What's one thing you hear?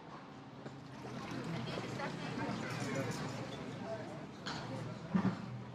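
Men and women chat in a murmur at nearby tables outdoors.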